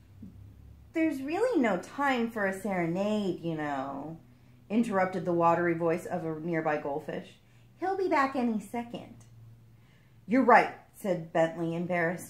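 A young woman reads aloud calmly, close by.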